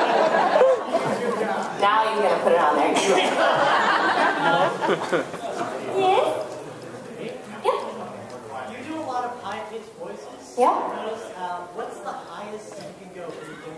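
A woman speaks animatedly into a microphone, heard through loudspeakers in a large echoing hall.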